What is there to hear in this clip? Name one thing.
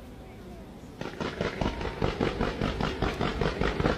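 Fireworks crackle rapidly in quick bursts.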